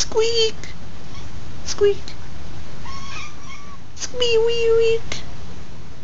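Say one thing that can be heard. A cat meows loudly up close.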